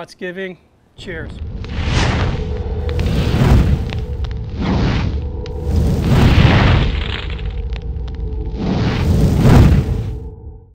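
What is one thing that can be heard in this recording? Flames roar loudly in bursts.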